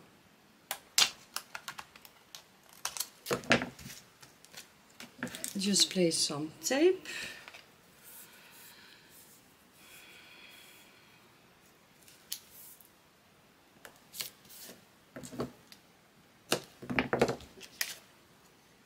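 A stiff card taps against a table.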